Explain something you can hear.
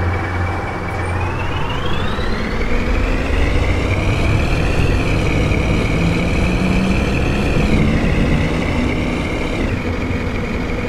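A bus engine revs up, rising in pitch as the bus pulls away.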